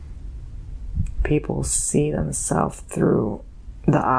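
A young man speaks softly close to a microphone.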